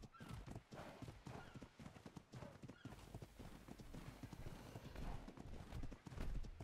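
Heavy animal footsteps thud quickly on sand.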